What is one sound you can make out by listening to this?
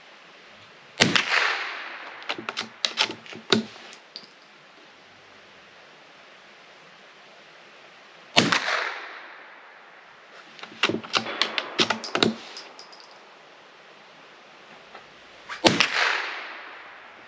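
A rifle fires loud shots that echo across open ground.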